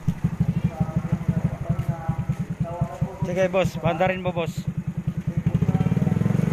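A motorcycle engine idles with a rapid putter.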